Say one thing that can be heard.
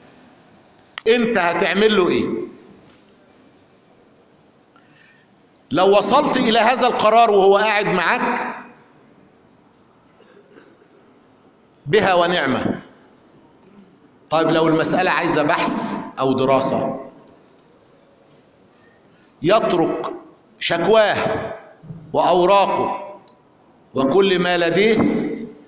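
A man speaks with animation into a microphone, in bursts with pauses, in a large echoing hall.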